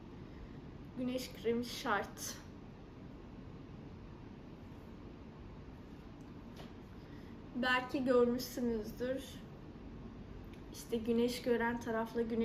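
A young woman speaks calmly and close by, in short bursts.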